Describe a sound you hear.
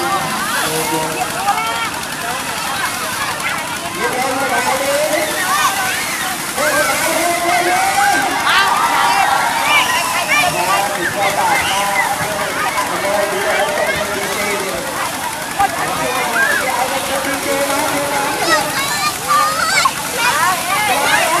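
Children shriek and squeal playfully.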